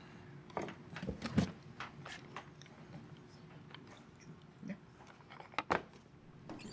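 A small wooden box knocks and clicks as it is handled.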